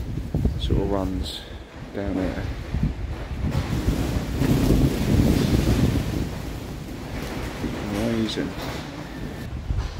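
Wind blusters steadily outdoors.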